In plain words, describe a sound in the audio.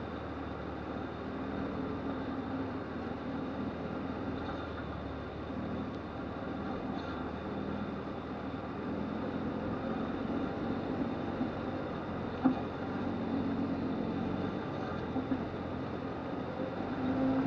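Tyres crunch over a bumpy dirt track.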